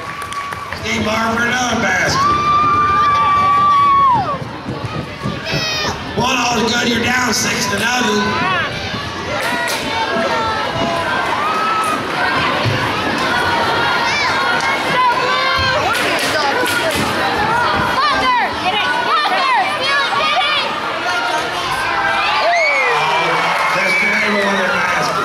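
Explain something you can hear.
A large crowd cheers and shouts in an echoing hall.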